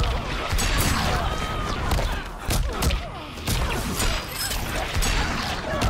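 Magic energy crackles and whooshes.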